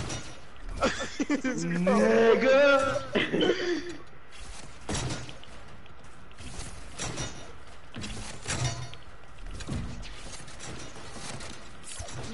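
Building pieces snap into place with quick clicks and thuds.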